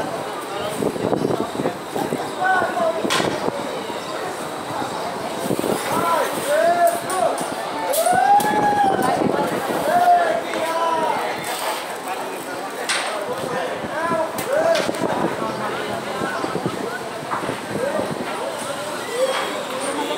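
A man talks nearby, outdoors.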